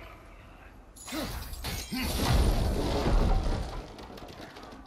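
A wooden gate crashes down and breaks apart.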